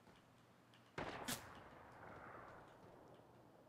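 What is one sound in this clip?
A rifle shot cracks and echoes.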